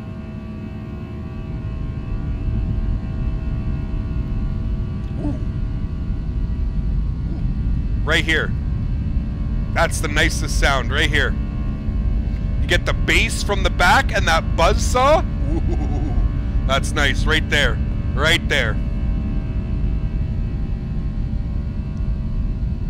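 A steady low aircraft engine drone hums throughout.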